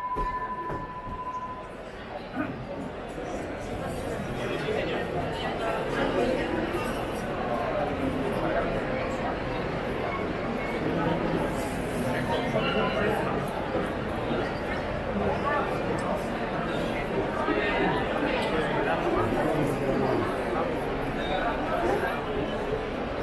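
A large crowd of men and women murmurs and chatters outdoors.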